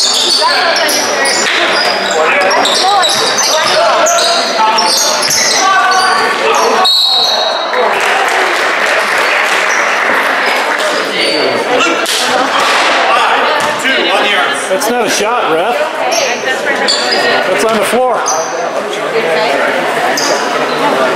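Spectators talk and cheer nearby.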